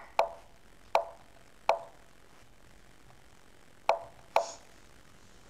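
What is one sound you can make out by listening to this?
Short sharp clicks sound as chess moves are played.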